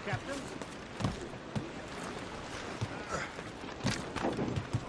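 Footsteps thud on a wooden ship deck.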